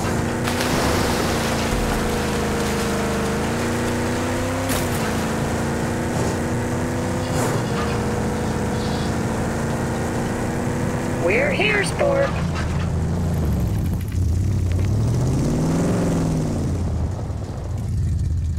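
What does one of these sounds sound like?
A vehicle engine hums steadily and shifts in pitch as it drives.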